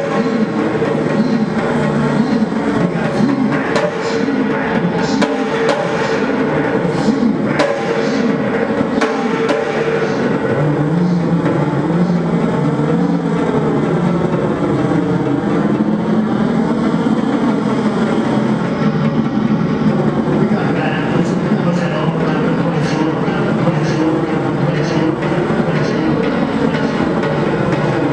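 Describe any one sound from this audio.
Electronic instruments drone and warble loudly through loudspeakers.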